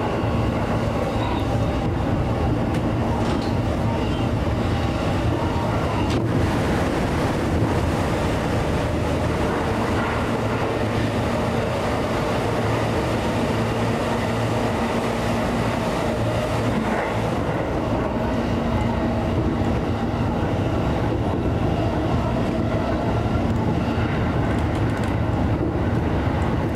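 A train rumbles steadily along the rails from inside its cab.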